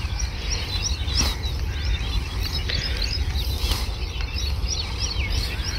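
Granules scatter and patter onto loose soil.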